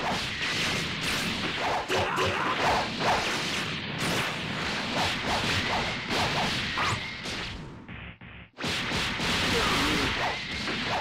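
Punches and blasts thud and crackle in quick bursts.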